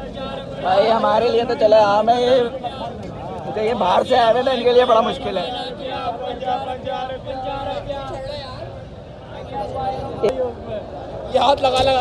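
Several men talk loudly nearby in a crowd outdoors.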